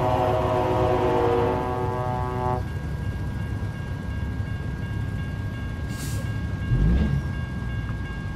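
A semi-truck's diesel engine rumbles as it cruises.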